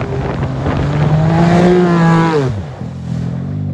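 A turbocharged side-by-side UTV engine revs hard as it slides.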